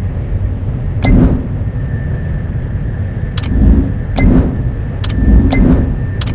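Metal clanks sharply several times.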